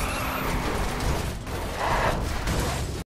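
A car scrapes against a barrier with a grinding rasp.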